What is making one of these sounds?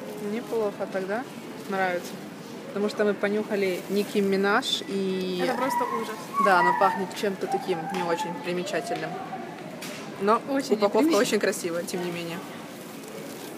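A young woman talks close up, casually and with animation.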